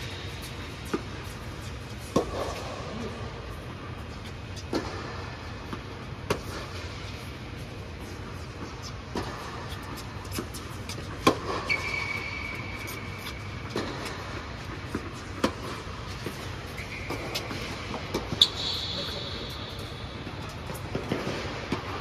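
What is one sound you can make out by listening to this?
Tennis balls are struck with rackets, with sharp pops echoing in a large hall.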